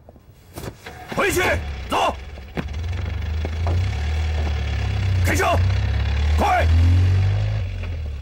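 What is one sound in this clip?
A man shouts.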